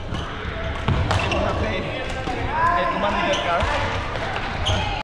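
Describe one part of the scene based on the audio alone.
Badminton rackets strike shuttlecocks with sharp pops in a large echoing hall.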